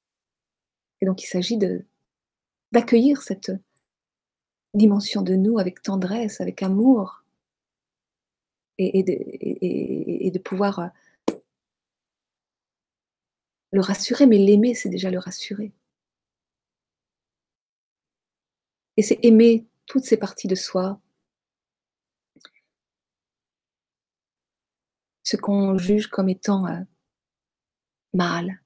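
A middle-aged woman speaks calmly and closely into a microphone, heard as over an online call, with pauses between phrases.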